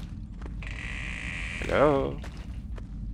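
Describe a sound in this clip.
A door creaks open slowly.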